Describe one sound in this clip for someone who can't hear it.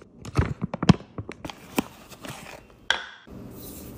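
A foil pouch crinkles.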